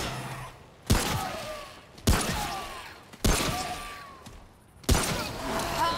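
A pistol fires single loud shots that echo outdoors.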